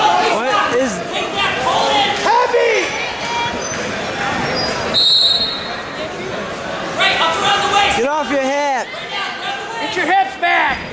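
Spectators and coaches shout encouragement in a large echoing hall.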